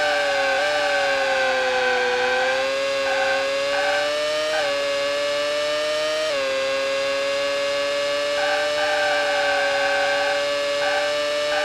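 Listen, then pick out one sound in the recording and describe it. A racing car engine whines steadily, its pitch dropping and rising as it shifts gears.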